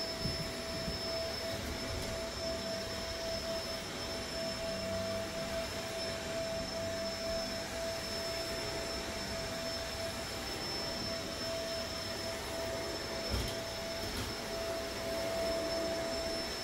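A carpet cleaning machine hums and whines steadily.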